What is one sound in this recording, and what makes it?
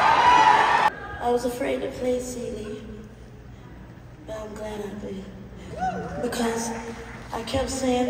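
A woman speaks with feeling into a microphone, heard over loudspeakers in a large hall.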